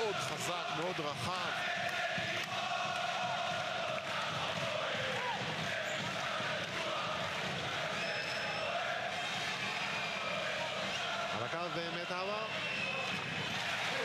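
A large crowd cheers and roars loudly throughout.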